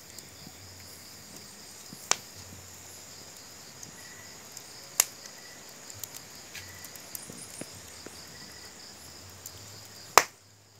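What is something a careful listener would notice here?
A wood fire crackles and pops, with sharp loud snaps now and then.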